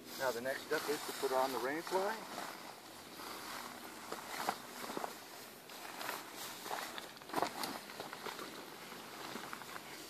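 Fabric rustles and flaps as a man handles a bag.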